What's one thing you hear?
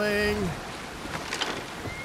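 Waves splash against a boat's hull.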